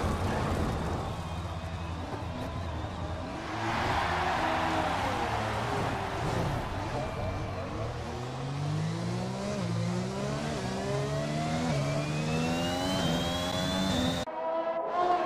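A racing car engine revs up through the gears.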